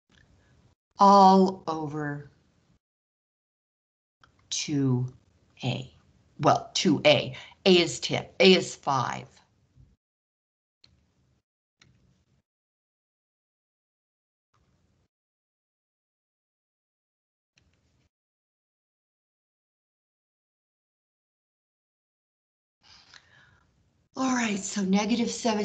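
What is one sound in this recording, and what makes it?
A woman explains calmly through a microphone, pausing now and then.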